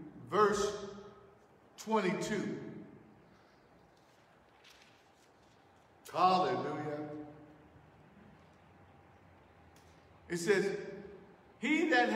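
A man speaks loudly into a microphone in short bursts, echoing through a large hall.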